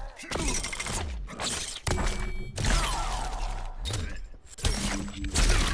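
A metal chain whips and rattles.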